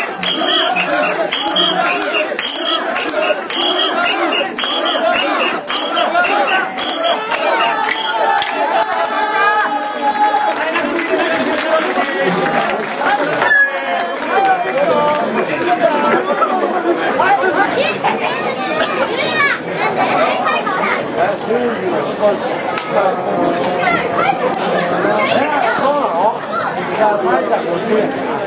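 Many people shout and cheer in a noisy crowd outdoors.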